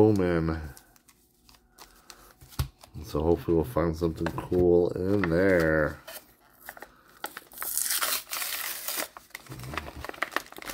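Plastic wrappers crinkle and rustle in hands.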